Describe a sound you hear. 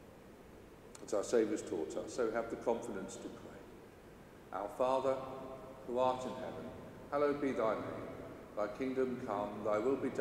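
A man speaks or sings in a slow, steady voice through a microphone in a large echoing hall.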